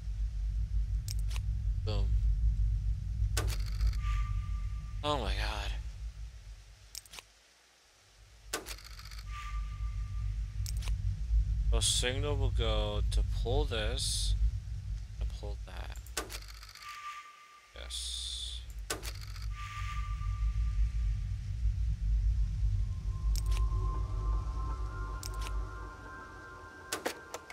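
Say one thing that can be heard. Short electronic clicks sound now and then.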